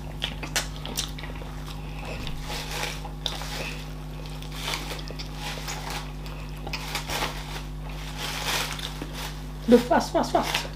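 A woman chews and swallows food with wet mouth sounds close to the microphone.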